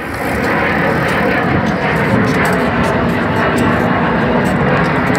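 Bicycle tyres roll steadily over pavement.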